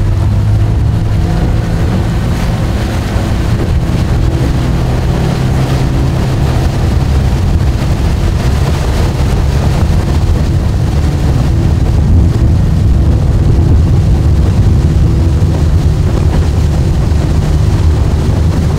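Wind buffets the microphone in an open boat.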